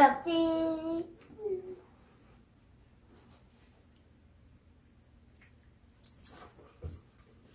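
A young boy speaks playfully, close by.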